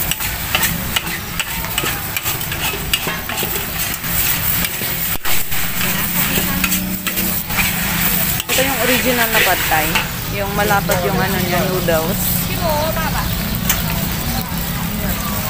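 Metal spatulas scrape and clatter against a wok.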